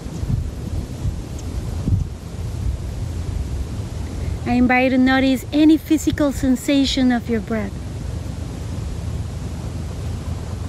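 Wind blows steadily outdoors, rumbling across the microphone.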